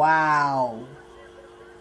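A man shouts loudly into a microphone, his voice falling in pitch.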